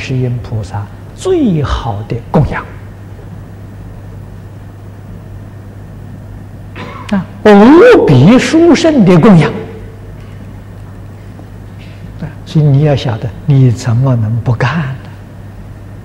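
An elderly man speaks calmly and with animation into a close microphone, with long pauses.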